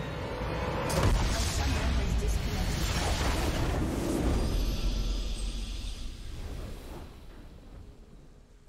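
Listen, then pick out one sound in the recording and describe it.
A game's base explodes with a loud rumbling blast.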